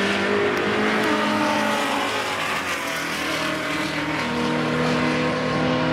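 A Nissan GT-R launches and accelerates at full throttle.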